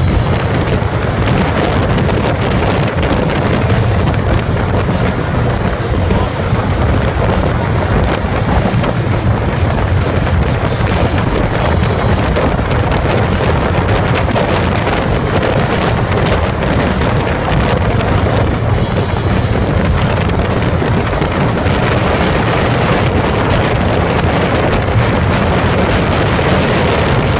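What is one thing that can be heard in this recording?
Water splashes and churns against a moving boat's hull.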